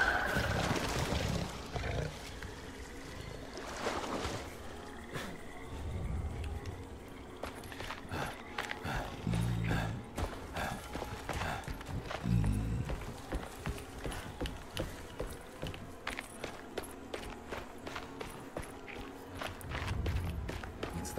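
Footsteps thud quickly on dirt and wooden boards.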